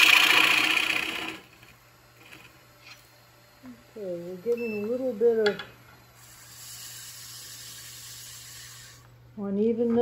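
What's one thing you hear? A chisel shaves wood on a spinning lathe with a loud hiss.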